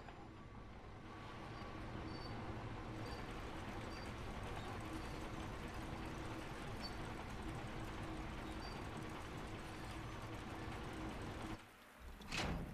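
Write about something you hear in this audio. Machinery hums and whirs as gears turn.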